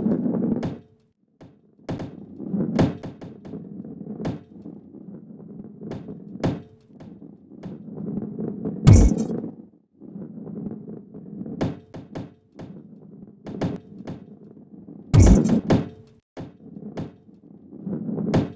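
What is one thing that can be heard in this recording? A ball rolls and rumbles along a wooden track.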